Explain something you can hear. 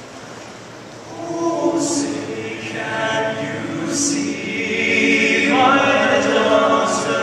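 A group of men sings together in close harmony in a large echoing hall.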